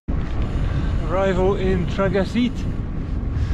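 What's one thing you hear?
A middle-aged man talks cheerfully, close by.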